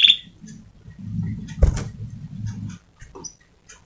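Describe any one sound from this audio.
A small bird flutters its wings.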